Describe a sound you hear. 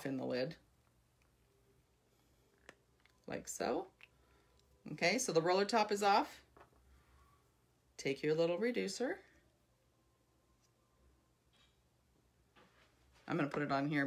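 A woman speaks calmly and close by, in short bursts.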